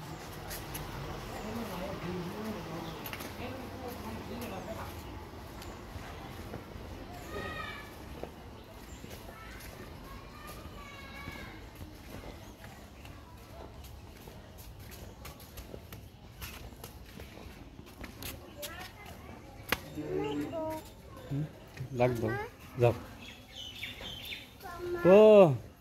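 A small child's footsteps patter on a dirt path.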